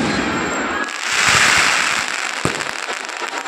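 Fireworks hiss and sizzle in a burst of sparks.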